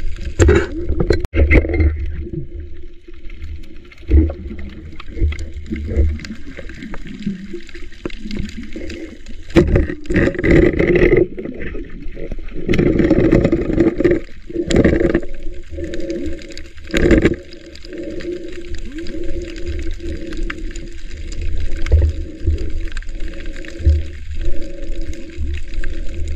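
Water churns and rumbles with a muffled underwater sound.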